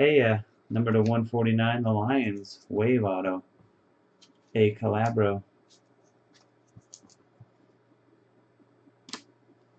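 Trading cards rustle and click as they are handled.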